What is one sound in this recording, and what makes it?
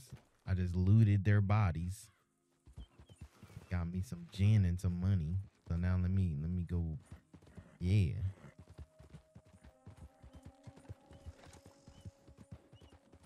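Horse hooves clop on a dirt trail.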